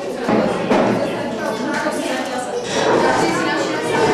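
Children and adults chatter in a busy room.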